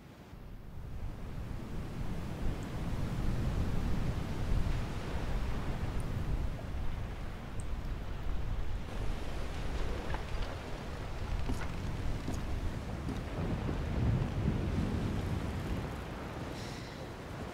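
Ocean waves rush and roar steadily.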